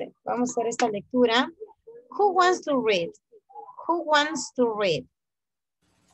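A young woman speaks clearly over an online call.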